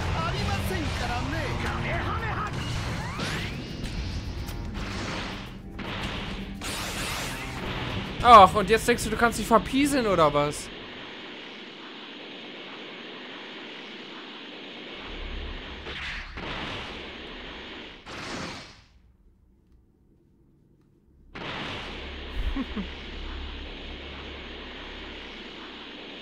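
A crackling energy aura whooshes and hums as a character flies.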